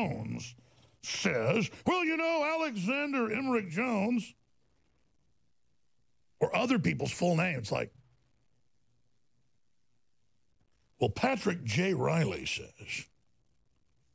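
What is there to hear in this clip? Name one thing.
A man speaks forcefully into a microphone, in short bursts.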